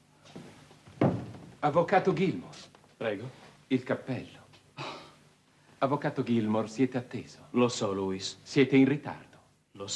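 A man speaks loudly and with animation nearby.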